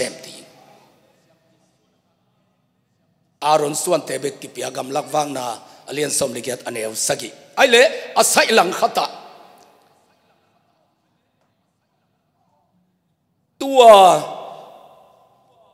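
A man speaks with animation through a microphone and loudspeakers in a reverberant room.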